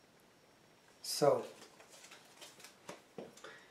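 Paper rustles and crinkles as it is handled and folded.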